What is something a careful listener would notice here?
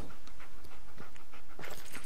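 A dog's paws patter on wooden boards.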